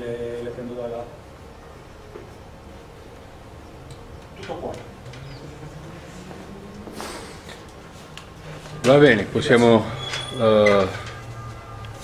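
A man speaks into a microphone in a large room, pausing between phrases.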